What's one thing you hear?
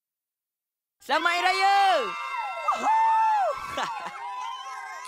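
Young children cheer excitedly.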